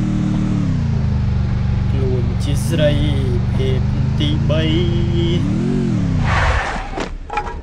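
A motorbike engine hums steadily, then revs up and cuts out.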